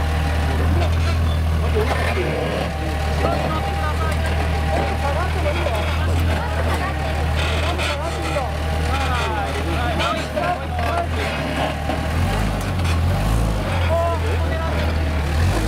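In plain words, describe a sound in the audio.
An off-road vehicle's engine rumbles low and steady as it crawls over rocks.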